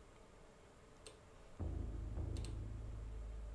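A game menu gives short soft clicks.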